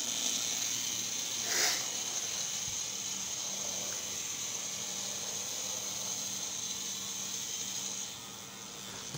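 A battery toy spider whirs as it crawls across the floor.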